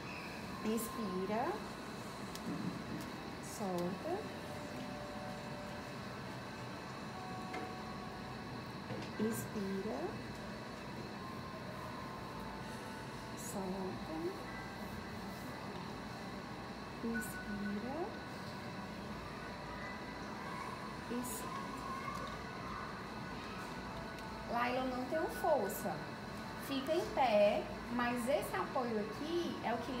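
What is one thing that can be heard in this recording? A woman speaks softly in short phrases close by.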